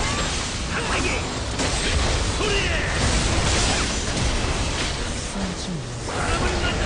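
Video game battle effects clash and blast loudly.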